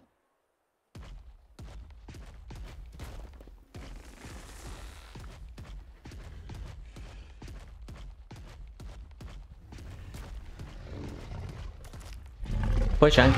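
A large creature's heavy footsteps thud on soft ground.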